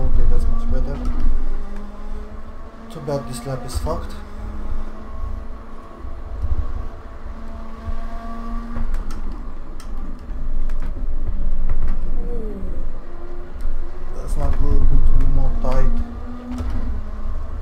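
A racing car engine roars and revs through gear changes.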